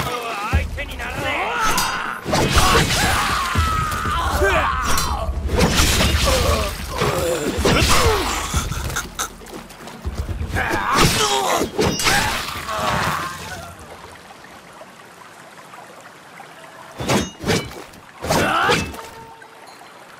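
Swords clash and ring sharply.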